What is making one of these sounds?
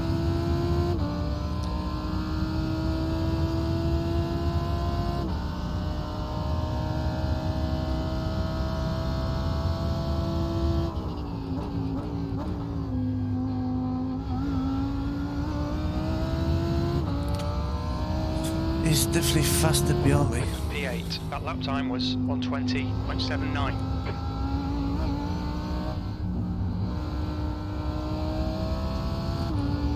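A race car engine roars steadily, its pitch rising and dropping as gears shift.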